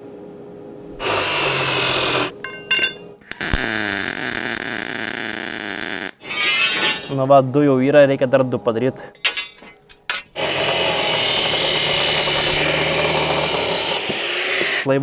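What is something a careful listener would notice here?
A cut-off saw whines loudly as it cuts through metal.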